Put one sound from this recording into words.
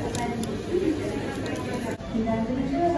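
A paper bag crinkles and rustles close by.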